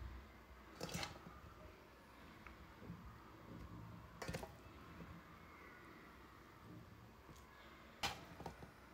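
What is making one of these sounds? Vegetables knock and clink against a glass jar as they are packed in.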